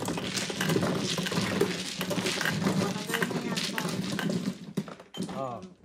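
Mahjong tiles clatter and rattle as hands sweep them across a table.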